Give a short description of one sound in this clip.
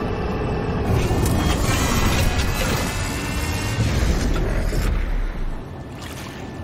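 A spaceship engine roars and whines as the ship sets down, then cuts off.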